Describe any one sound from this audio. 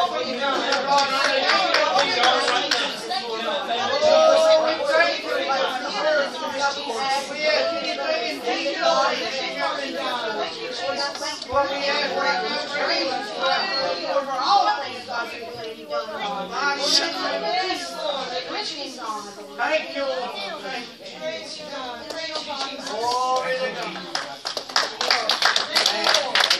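A crowd of men and women talk and pray aloud together in an echoing hall.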